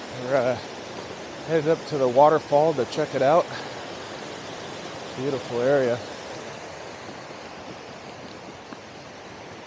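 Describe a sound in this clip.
A mountain stream rushes over rocks close by.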